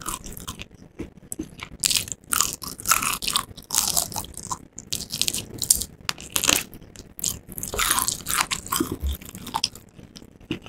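Wet, close chewing and smacking of the mouth.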